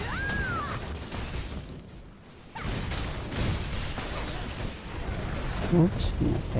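Game combat effects whoosh and clash with bursts of spell impacts.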